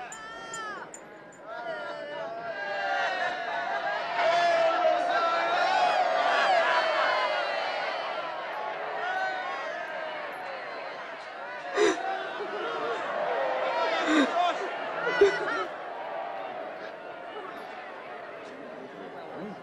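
Several women wail and lament loudly nearby.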